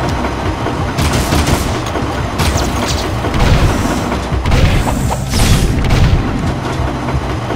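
A futuristic gun fires bursts of rapid laser shots.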